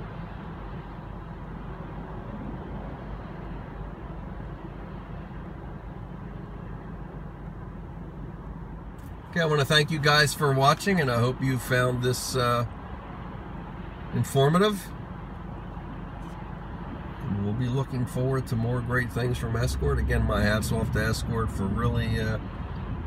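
A car hums and its tyres rumble steadily on a highway.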